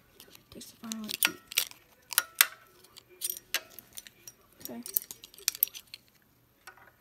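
Metal keys on a ring jingle and clink.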